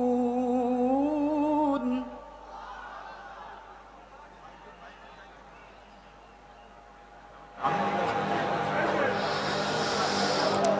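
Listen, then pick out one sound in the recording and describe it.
A young man chants in a long melodic recitation through a microphone and loudspeakers.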